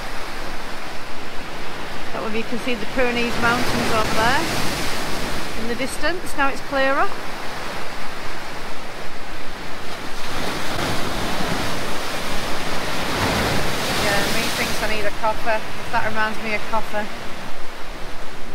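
Waves crash and wash over rocks close by.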